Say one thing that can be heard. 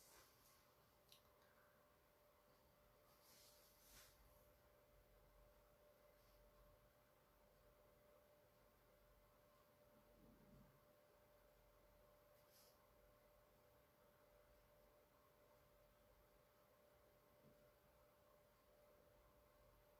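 A paintbrush softly brushes across a canvas.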